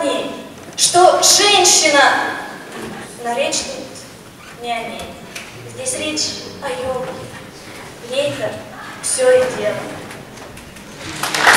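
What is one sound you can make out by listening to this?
A young woman sings through a microphone in a large echoing hall.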